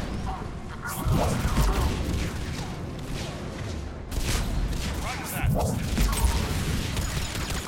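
Explosions boom heavily.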